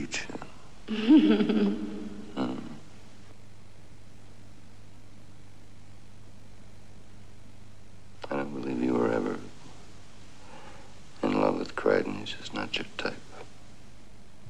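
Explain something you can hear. A man speaks softly and wearily, close by.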